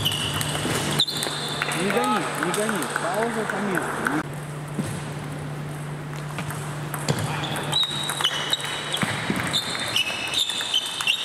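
Sports shoes squeak on a hard floor.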